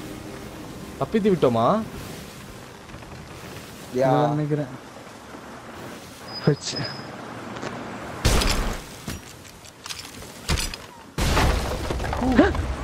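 A young man speaks through a headset microphone, in short remarks.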